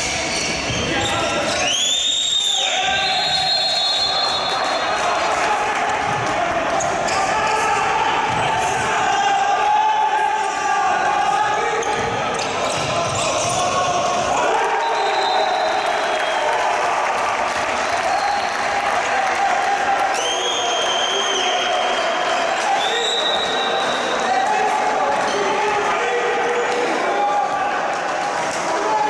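A crowd of spectators chants and cheers in an echoing indoor hall.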